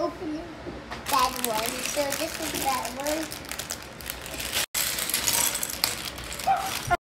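A plastic bag crinkles and rustles in small hands.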